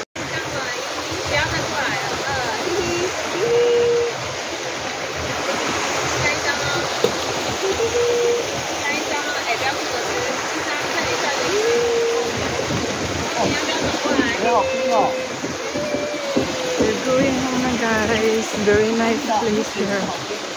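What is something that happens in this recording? A woman talks close by with animation.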